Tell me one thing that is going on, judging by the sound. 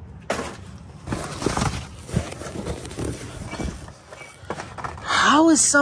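Cardboard boxes rustle and scrape as a hand rummages through them.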